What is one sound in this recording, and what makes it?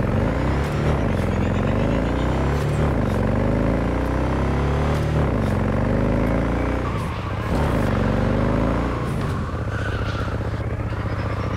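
A motorcycle engine revs up and down through repeated gear shifts.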